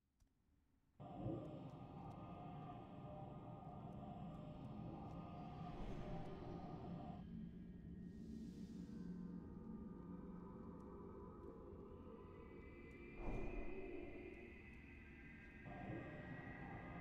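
Magic spells crackle and whoosh amid a busy fantasy battle.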